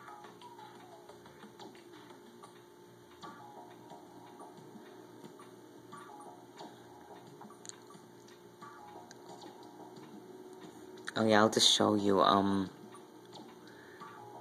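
Soft electronic game music plays from a television.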